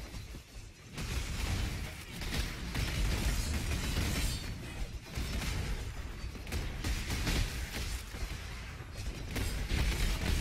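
Fiery explosions crackle and boom repeatedly.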